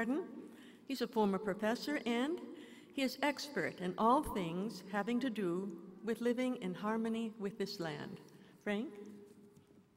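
An older woman speaks calmly through a microphone.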